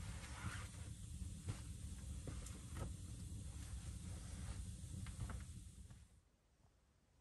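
Heavy fabric rustles and thumps as a bedroll is folded.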